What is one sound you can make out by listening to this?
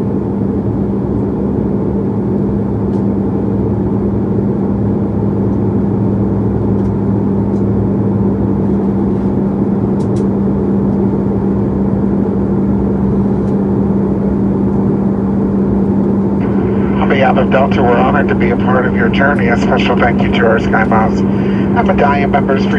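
A jet airliner's engines drone steadily inside the cabin.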